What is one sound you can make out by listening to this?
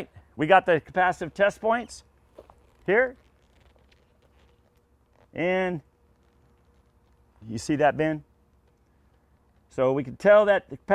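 A middle-aged man speaks calmly and clearly, close by, in short phrases with pauses.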